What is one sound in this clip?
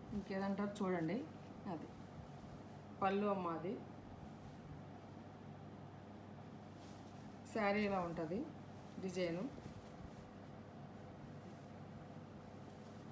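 Cloth rustles softly as it is handled.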